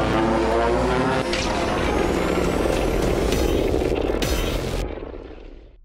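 Energy beams blast with a loud roaring hum.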